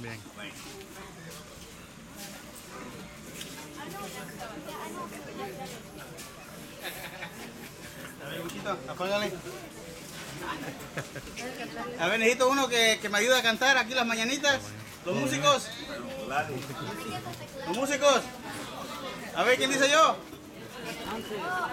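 Several people chatter quietly in the background.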